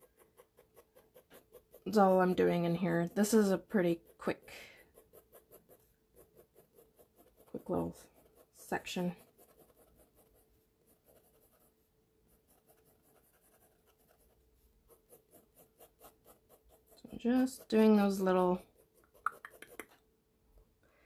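A pencil scratches and rasps on paper in quick strokes.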